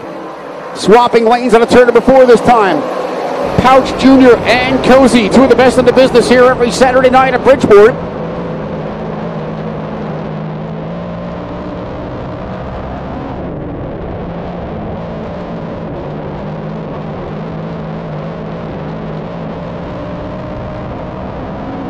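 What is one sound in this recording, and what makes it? Race car engines roar steadily.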